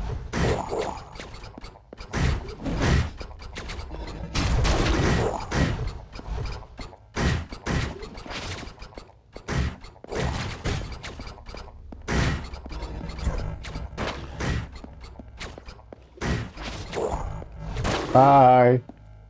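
Video game gunshots and blasts go off in rapid bursts.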